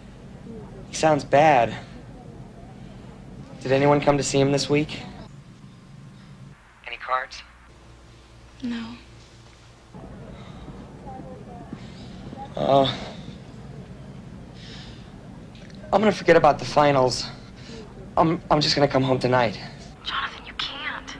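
A young man talks on a phone with animation, close by.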